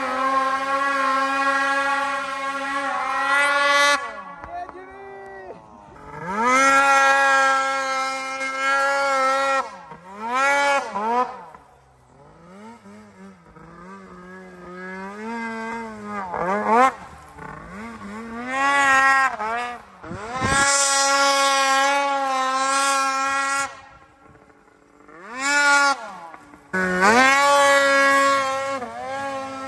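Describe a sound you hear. A snowmobile engine whines loudly, revving up and down in bursts.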